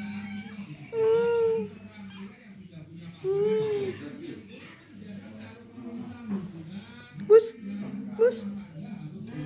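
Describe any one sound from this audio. A domestic cat meows several times.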